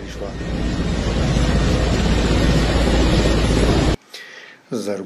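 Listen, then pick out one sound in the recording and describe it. A helicopter's rotor thumps and whirs nearby.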